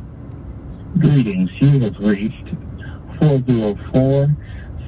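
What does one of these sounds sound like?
A young man speaks close to a phone microphone in short bursts.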